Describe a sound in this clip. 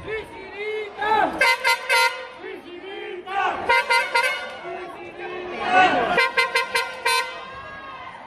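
A crowd cheers and chants loudly in an echoing hall.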